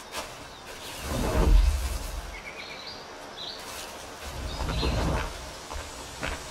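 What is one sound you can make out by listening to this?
Brush rustles as someone pushes through bushes.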